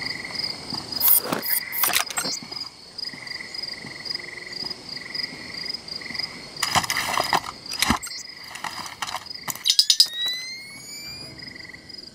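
Footsteps clang softly on metal stairs.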